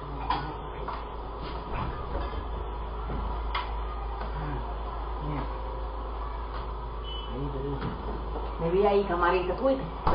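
Items clatter and knock as a refrigerator is rummaged through.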